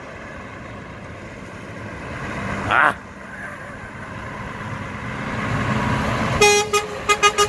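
A truck engine rumbles as the truck drives slowly closer.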